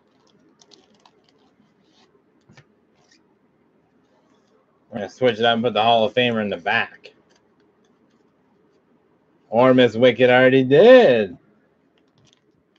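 Plastic wrapping crinkles softly as hands handle it.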